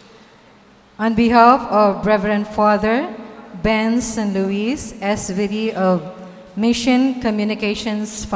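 A middle-aged woman speaks steadily into a microphone, heard through a loudspeaker.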